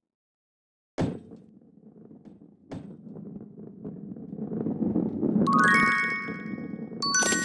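A burning ball rumbles as it rolls along.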